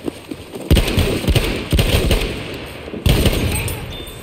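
A rifle fires sharp, loud shots in quick bursts.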